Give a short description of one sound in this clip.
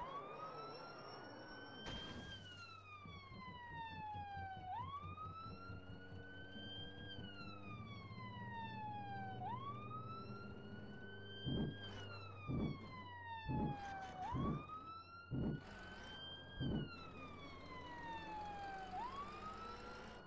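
A siren wails, slowly rising and falling over and over.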